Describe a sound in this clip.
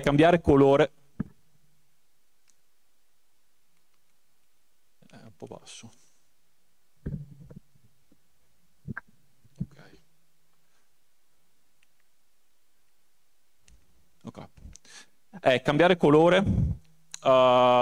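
A man speaks through a microphone in a calm, lecturing voice, with long pauses.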